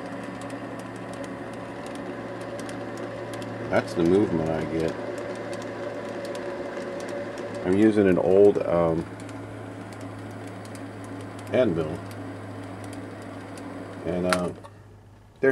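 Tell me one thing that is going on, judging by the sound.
A machine motor hums steadily, then stops.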